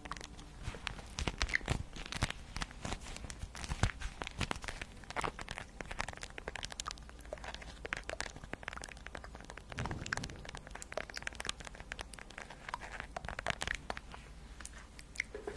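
Fingernails tap and scratch a crinkly card close to a microphone.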